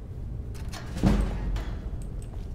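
A heavy lock clicks open with a dull thud.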